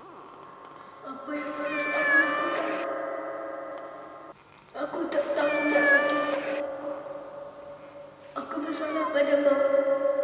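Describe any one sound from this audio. A domestic cat meows.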